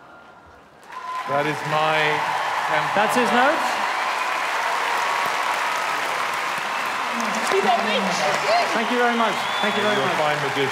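A large audience applauds and cheers loudly.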